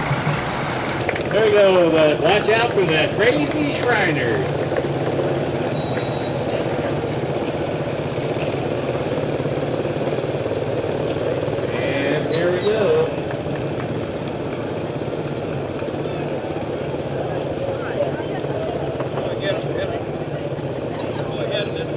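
Small scooter engines buzz and rev as riders pass close by.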